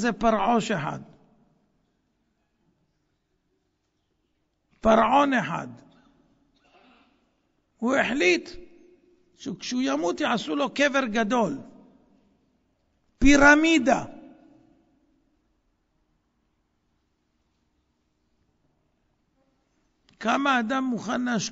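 A middle-aged man speaks emphatically into a microphone, with long pauses.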